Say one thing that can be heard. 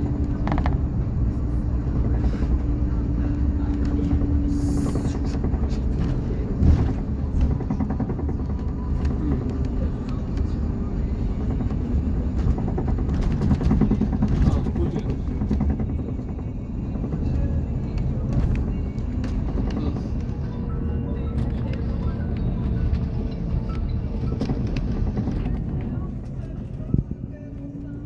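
A bus engine rumbles steadily, heard from inside the bus.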